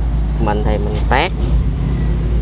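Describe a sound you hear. A blade snaps through a thick, juicy plant leaf with a short crunch.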